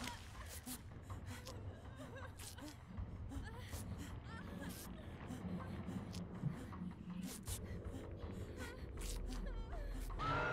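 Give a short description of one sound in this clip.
Reeds rustle as someone pushes through them.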